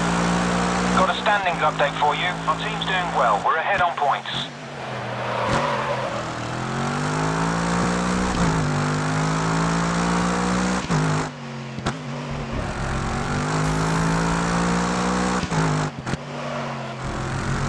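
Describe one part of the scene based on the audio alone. A race car engine roars, rising and falling in pitch as the car speeds up and shifts gears.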